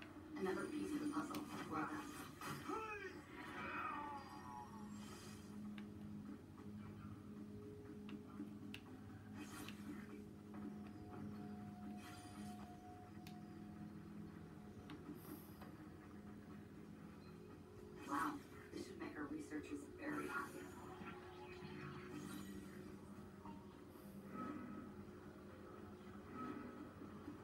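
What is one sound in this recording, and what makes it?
Video game sound plays from a television's speakers.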